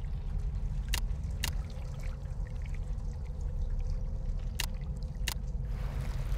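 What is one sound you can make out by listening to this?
Short sharp clicks sound as menu entries are selected.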